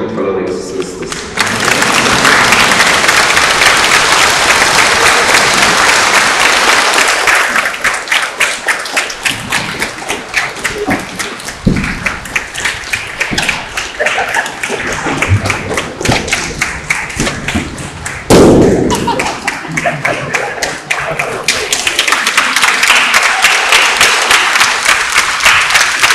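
A large crowd applauds in a large echoing hall.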